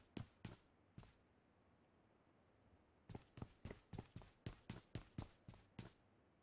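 Footsteps thud quickly on hard steps and floor.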